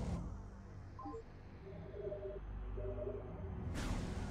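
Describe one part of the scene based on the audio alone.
Electronic menu tones chime in short beeps.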